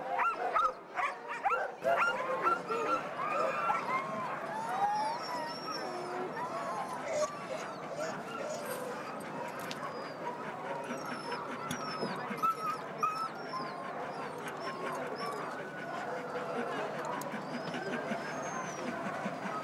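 Many dogs bark and yelp excitedly nearby.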